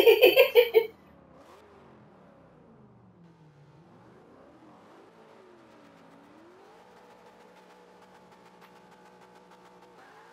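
A car engine revs and rumbles.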